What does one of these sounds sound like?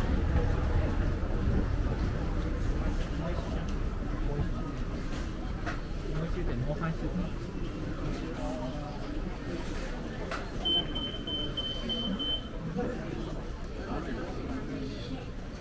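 A crowd murmurs in a busy indoor space.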